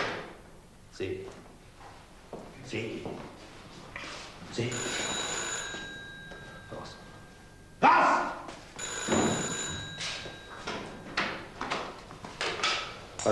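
A man speaks indoors.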